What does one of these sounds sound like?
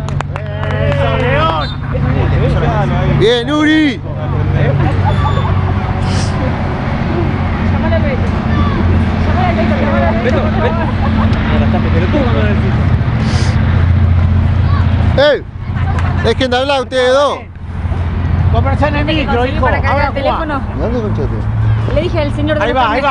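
Adults cheer and call out from nearby.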